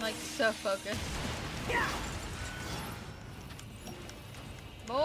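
Swords clash and slash in fast combat.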